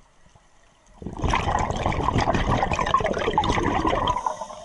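Scuba bubbles gurgle and rush loudly from a nearby diver's regulator.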